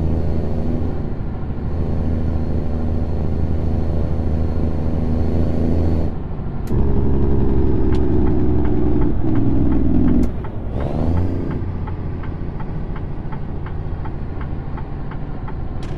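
A heavy truck engine drones steadily, rising and falling with the throttle.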